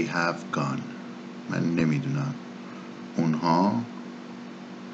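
A man speaks calmly and clearly into a microphone, in short phrases with pauses.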